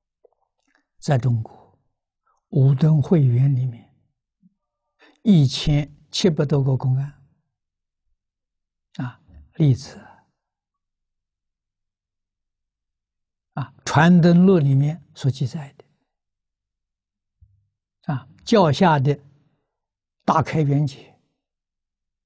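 An elderly man speaks calmly with long pauses, close to a microphone.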